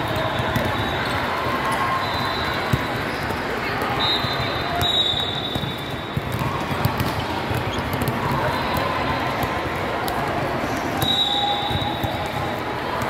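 A busy crowd murmurs and chatters throughout a large echoing hall.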